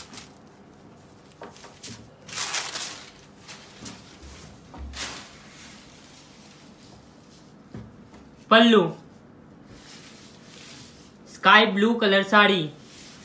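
Fabric rustles and swishes as it is handled.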